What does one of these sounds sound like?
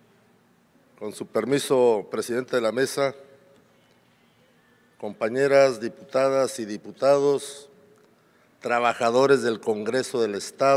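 A middle-aged man speaks with feeling into a microphone, heard through a loudspeaker in a large hall.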